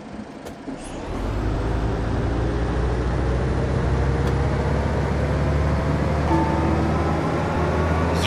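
A bus engine rumbles and rises in pitch as the bus pulls away.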